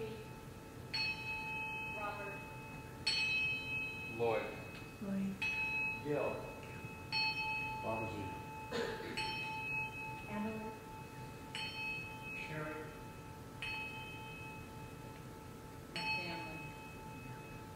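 A hand bell rings out clearly, again and again.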